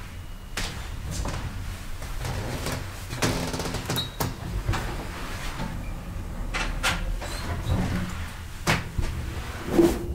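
An elevator car hums steadily as it moves.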